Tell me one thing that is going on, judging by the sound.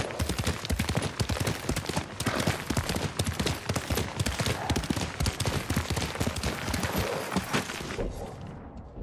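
Horse hooves gallop fast on a dirt path.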